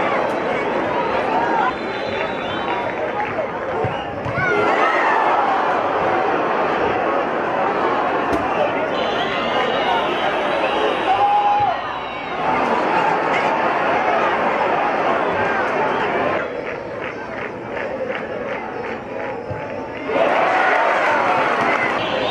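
A large stadium crowd roars and chants loudly throughout.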